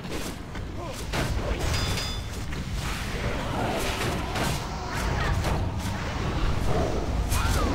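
Magic spells whoosh and crackle during a fight.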